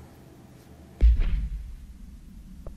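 A deep whoosh booms and fades.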